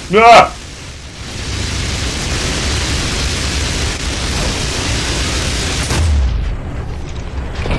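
Flames rush and roar.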